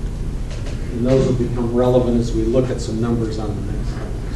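A middle-aged man speaks calmly to an audience.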